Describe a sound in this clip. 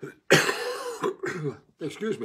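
An elderly man coughs close by.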